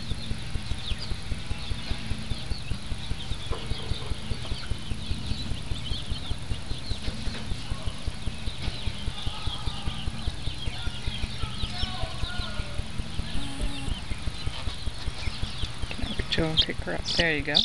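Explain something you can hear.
A chick peeps rapidly and repeatedly.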